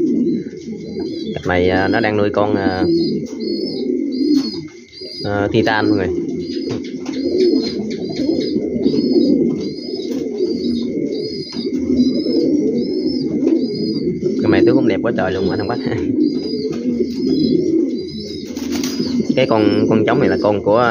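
A male King pigeon coos in courtship display.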